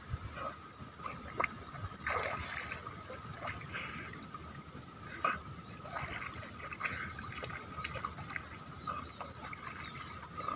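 Shallow water splashes under a dog's feet.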